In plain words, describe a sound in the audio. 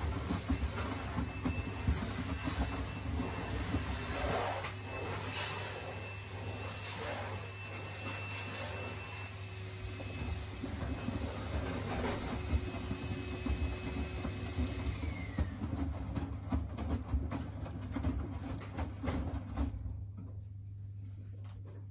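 Wet laundry thumps and sloshes inside a turning drum.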